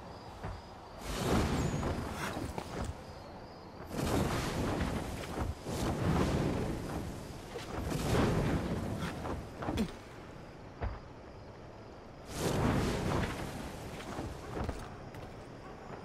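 A flock of birds flutters its wings in loud, rushing bursts.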